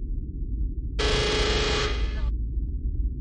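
A loud game alarm blares briefly.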